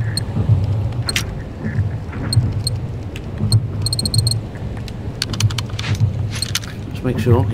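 Short electronic menu beeps tick quickly, one after another.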